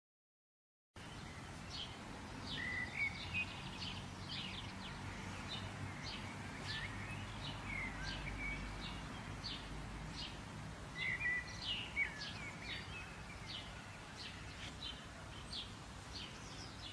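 A light breeze rustles through tall grass and flowers outdoors.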